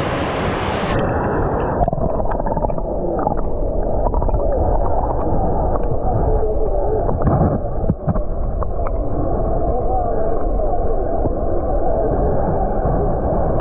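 Water rumbles and gurgles, heard muffled from underwater.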